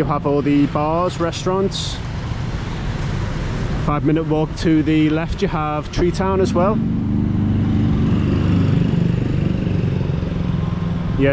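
Motorbike engines hum and rumble as they ride past nearby.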